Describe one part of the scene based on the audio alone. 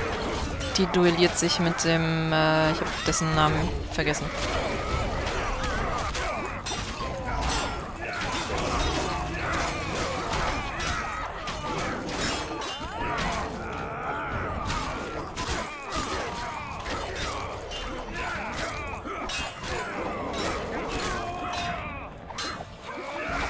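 Men shout and grunt as they battle.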